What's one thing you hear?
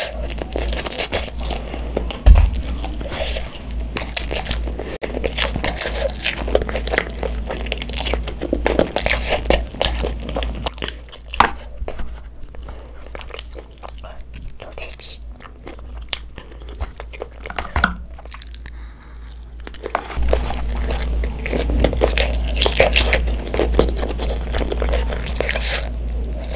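A young girl chews and slurps food close to a microphone.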